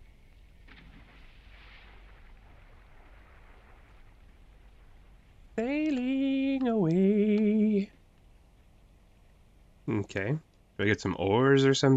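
Water laps softly against a small boat.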